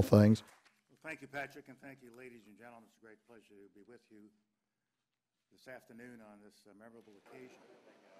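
An elderly man speaks slowly into a microphone, faint and distant.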